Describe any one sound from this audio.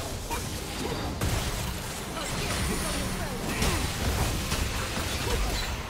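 Magic spell effects crackle and whoosh during a fantasy battle game fight.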